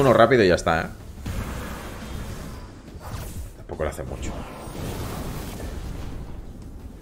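Energy blasts whoosh and boom in a video game.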